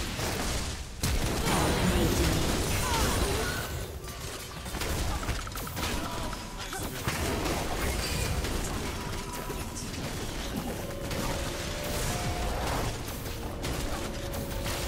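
Fantasy battle sound effects of spells and weapons whoosh, crackle and clash.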